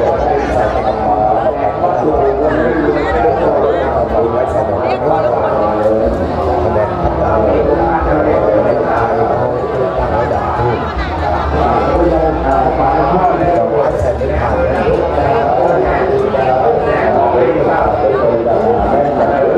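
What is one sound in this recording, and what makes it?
A crowd of people chatters all around, outdoors.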